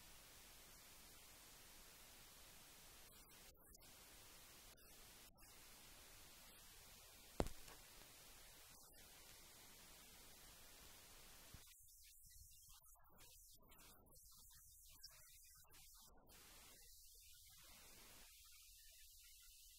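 A woman speaks calmly in a large echoing room.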